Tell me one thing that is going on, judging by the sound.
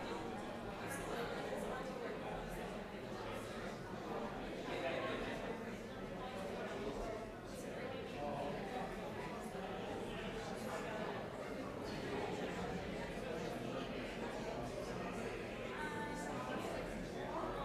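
A crowd of people murmurs and chats quietly in an echoing hall.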